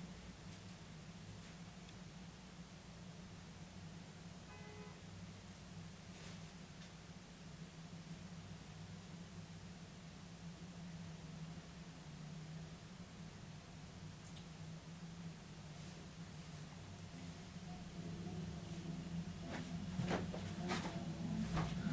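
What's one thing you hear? Light rain patters steadily on paving outdoors.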